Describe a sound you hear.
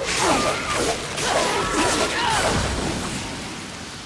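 Whip-like blades whoosh through the air in rapid slashes.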